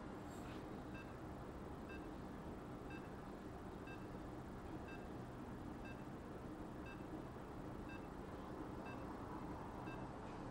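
An electronic beep sounds once a second, counting down.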